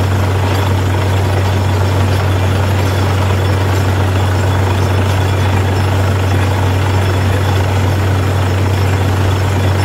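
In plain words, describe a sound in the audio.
A drill rod grinds and rattles into the ground.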